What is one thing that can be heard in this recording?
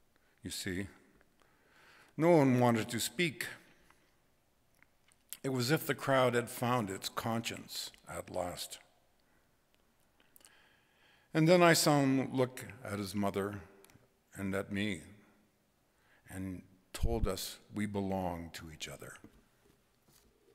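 An elderly man speaks calmly through a microphone in an echoing room.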